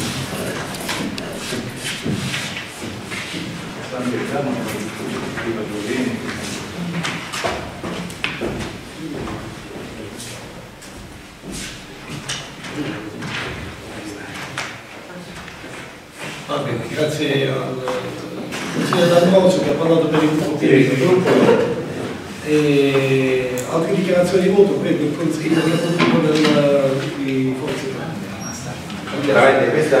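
A man speaks loudly from the floor of an echoing hall.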